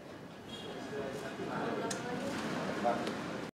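People murmur quietly in the background.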